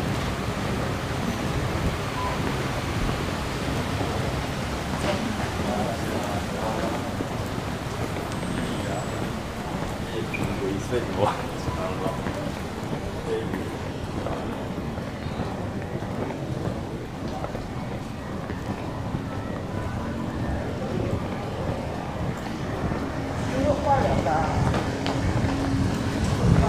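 A low murmur of people fills a large echoing hall.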